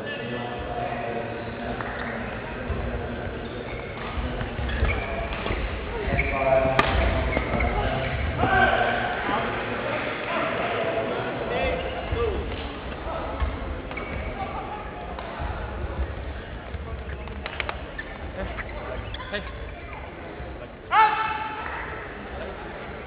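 Many voices murmur and talk in a large echoing hall.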